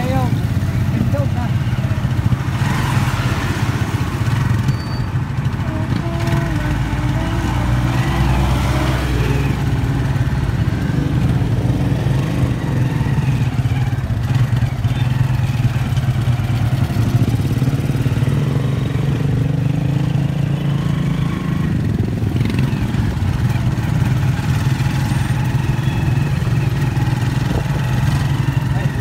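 A vehicle engine rumbles steadily from close by.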